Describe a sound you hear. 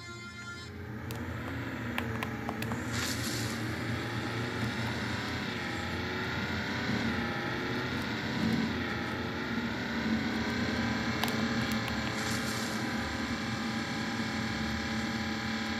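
A racing car engine drones and revs through a small speaker.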